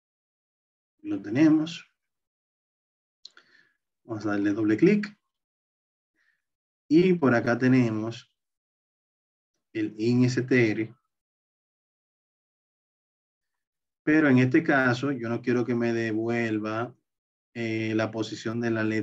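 A man explains calmly into a close microphone, in bursts with pauses.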